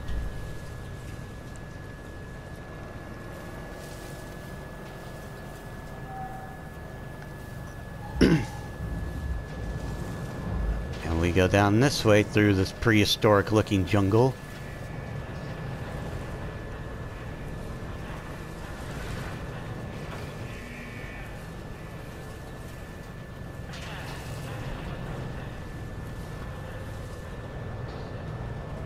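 A vehicle engine rumbles steadily as it drives over a dirt track.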